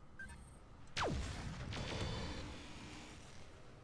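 A laser weapon fires with a sharp falling zap and a crackling rush.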